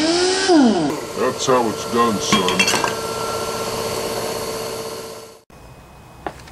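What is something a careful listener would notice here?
A small engine runs loudly, then cuts off.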